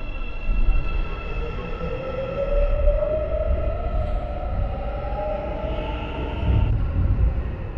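A train's motor whines, rising in pitch as it speeds up.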